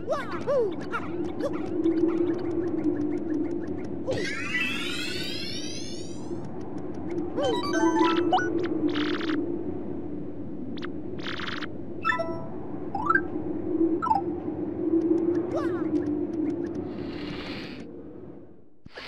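Cheerful game music plays steadily.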